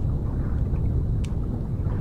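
Air bubbles gurgle from a diver.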